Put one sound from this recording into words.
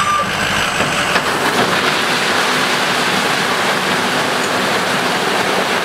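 Rocks tumble and clatter out of a dump truck bed onto pavement.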